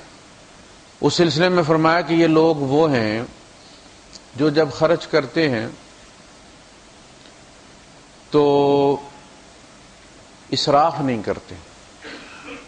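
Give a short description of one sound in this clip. A man chants in a melodic voice through a microphone, in short phrases with pauses between them.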